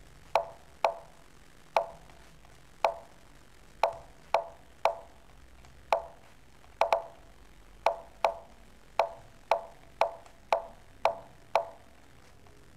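Sharp wooden clicks of chess pieces sound as moves are made in quick succession.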